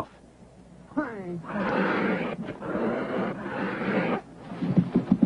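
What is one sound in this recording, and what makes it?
A cheetah snarls and hisses loudly.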